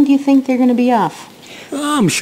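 A young woman speaks quietly and nervously.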